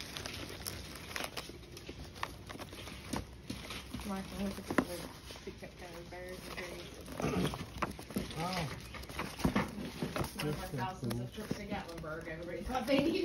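Paper sheets rustle and flap as they are flipped through.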